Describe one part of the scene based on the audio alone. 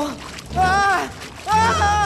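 Water splashes as something thrashes in the sea.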